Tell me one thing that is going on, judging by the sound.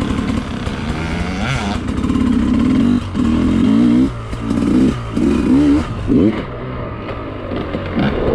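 A dirt bike engine revs up and down close by.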